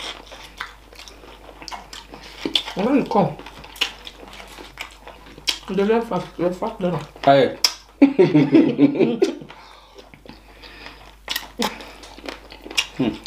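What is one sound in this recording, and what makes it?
A man chews and slurps food loudly close by.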